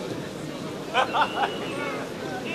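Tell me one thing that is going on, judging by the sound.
Spectators shout loudly.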